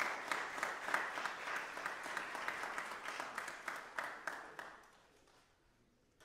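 An audience applauds in a large hall, then the clapping dies away.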